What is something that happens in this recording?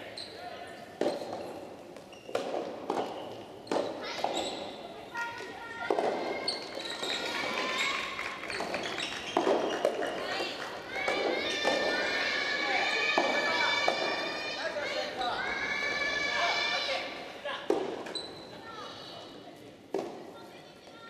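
A racket strikes a ball with sharp pops in a large echoing hall.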